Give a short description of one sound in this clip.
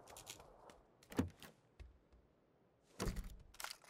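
A wooden door swings open.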